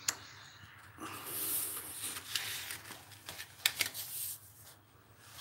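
Paper pages rustle as a book is handled and turned.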